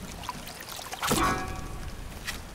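A soft squelch sounds as something squishy is pressed.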